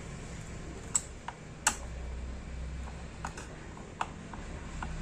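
A screwdriver clicks and taps against metal parts.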